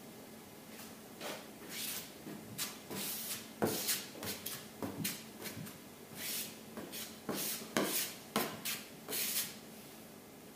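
A hand pad scrapes and rubs in quick strokes across a car's metal roof.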